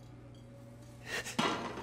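A metal lid scrapes off a cooking pot.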